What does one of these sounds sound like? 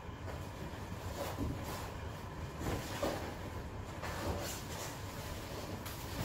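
A heavy dummy thumps against the floor.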